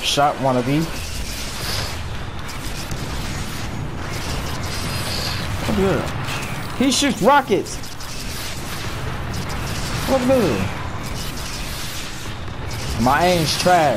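Laser guns fire in bursts.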